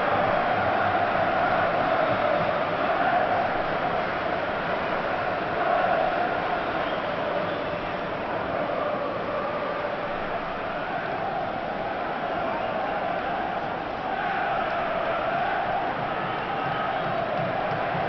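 A large crowd roars and chants steadily.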